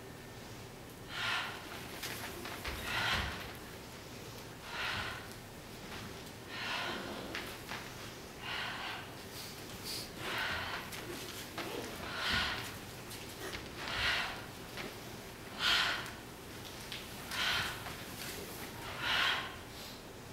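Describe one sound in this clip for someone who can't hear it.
Bare feet thud and slide on a wooden stage floor.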